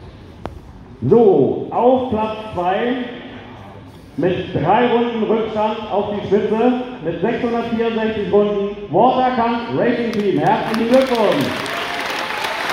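An elderly man speaks loudly to a gathered group, with pauses.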